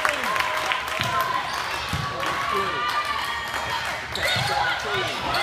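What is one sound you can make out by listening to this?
A volleyball is struck with a dull thump.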